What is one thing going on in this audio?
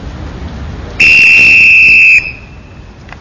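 A man blows a whistle in a long, shrill blast.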